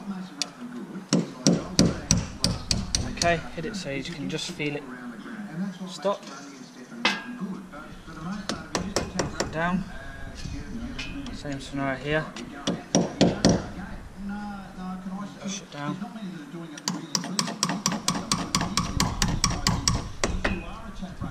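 A hammer taps quickly on metal.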